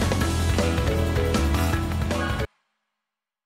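Upbeat game music plays loudly, then cuts off abruptly.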